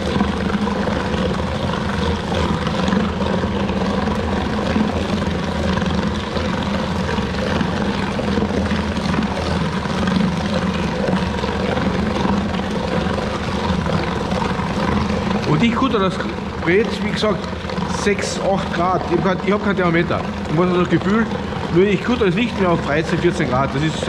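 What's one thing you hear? A food mixing machine hums and whirs steadily.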